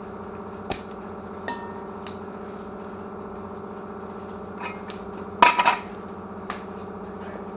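Metal clanks as a jack stand is set down and adjusted.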